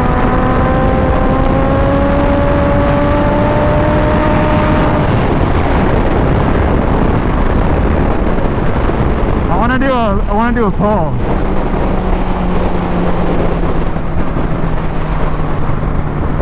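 Wind rushes hard past the rider.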